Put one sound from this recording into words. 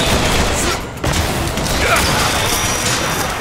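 Glass shatters with a crackling burst.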